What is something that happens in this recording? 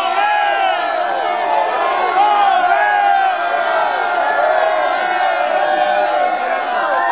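A lively crowd chatters and cheers outdoors.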